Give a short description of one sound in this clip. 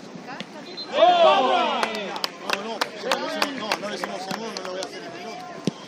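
Spectators on the sideline cheer loudly.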